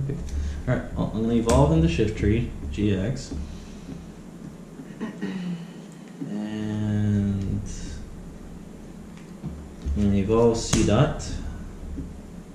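A man talks calmly up close.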